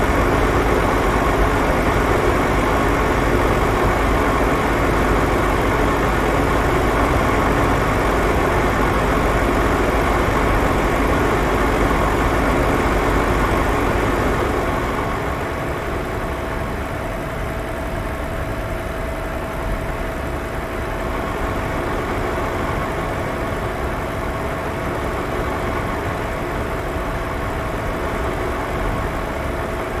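A truck engine hums steadily while driving.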